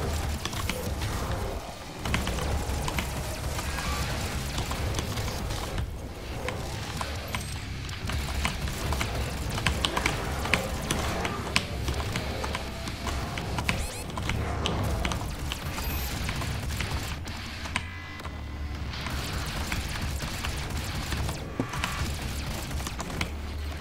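Monsters growl and roar.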